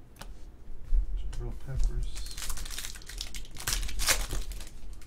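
A foil pack crinkles and tears as hands open it.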